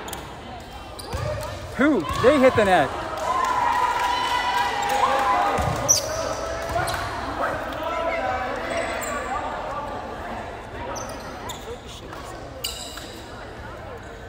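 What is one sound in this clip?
A crowd of spectators cheers and calls out in a large echoing hall.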